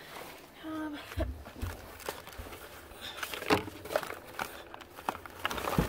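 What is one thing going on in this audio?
Plastic crinkles and rustles close by.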